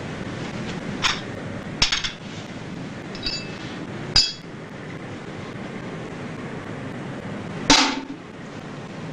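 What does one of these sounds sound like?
Dishes and cutlery clink on a tray.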